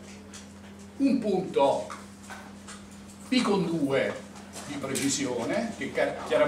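A middle-aged man speaks calmly, as if lecturing.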